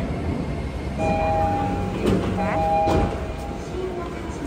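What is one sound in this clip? A train's door chime beeps in short tones.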